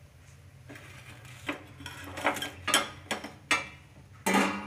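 A metal ladle clinks against a wire strainer.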